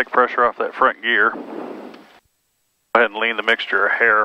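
A man talks calmly, close to a headset microphone.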